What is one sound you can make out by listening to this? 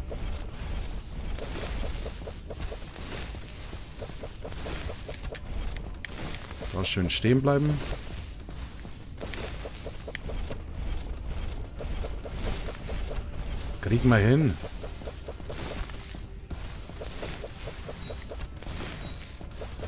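Sword slashes swish and clash in quick succession.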